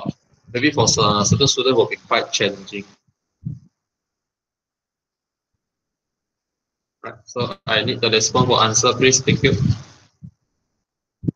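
A man speaks calmly into a microphone over an online call.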